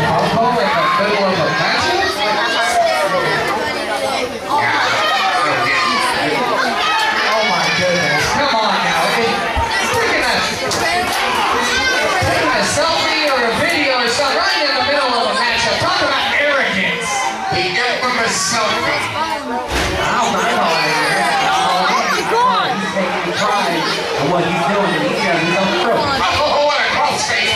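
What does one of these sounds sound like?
A crowd of people cheers and chatters loudly in a large echoing hall.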